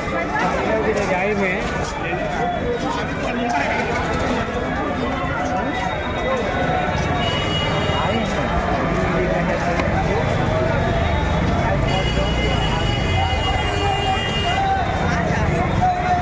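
A dense crowd of men and women chatters all around outdoors.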